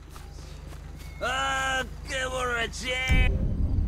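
Footsteps run across dry, gravelly ground.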